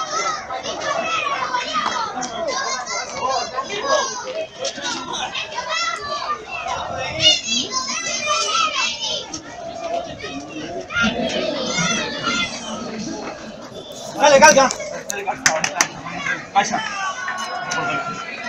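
Several men talk and shout excitedly nearby in a crowd.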